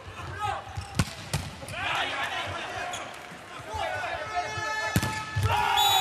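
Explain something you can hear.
A volleyball is struck hard with sharp smacks.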